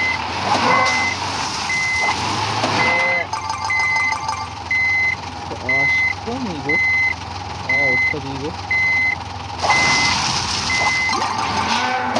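A warning tone beeps at a steady pace.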